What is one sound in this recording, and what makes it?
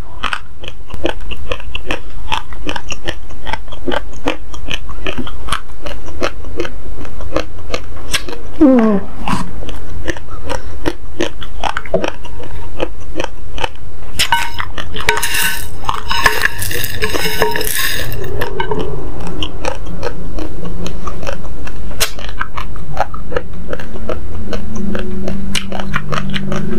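A woman crunches on hard dry grains close to a microphone.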